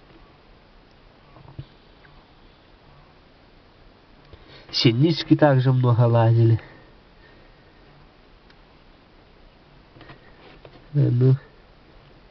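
Bees buzz and hum softly close by.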